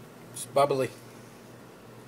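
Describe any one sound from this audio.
Champagne pours into a glass and fizzes.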